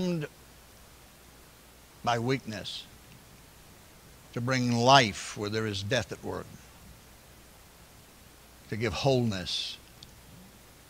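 An older man speaks with emphasis over a microphone, in pauses, in a large echoing room.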